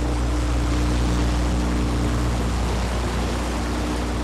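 Water sprays and churns behind a speeding boat.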